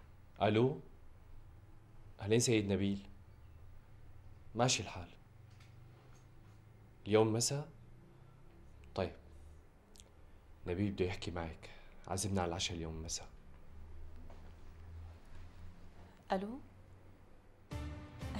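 A man speaks in short, halting phrases, close by.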